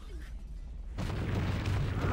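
A giant foot stomps down with a heavy crash, scattering rubble.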